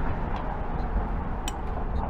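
A chess piece taps down on a board.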